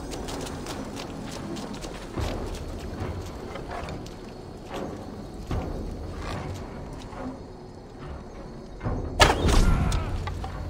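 Footsteps crunch on dirt and grass.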